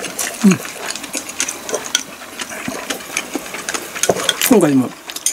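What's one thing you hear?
A woman chews and slurps food close to a microphone.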